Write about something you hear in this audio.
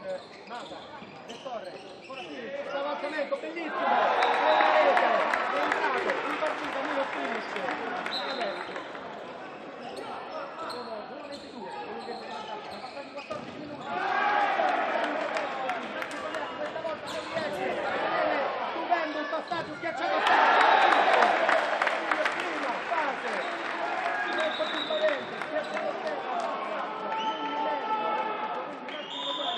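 A crowd cheers and shouts in a large echoing hall, swelling in loud bursts.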